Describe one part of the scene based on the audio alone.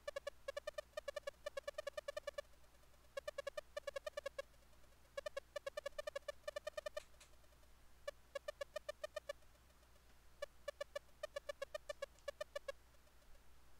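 Rapid electronic blips chatter in short bursts as text types out.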